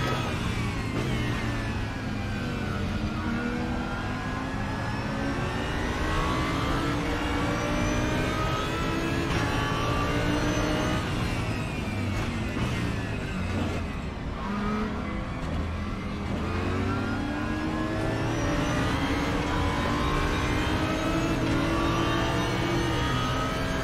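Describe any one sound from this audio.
A racing car engine roars and revs up and down as gears shift.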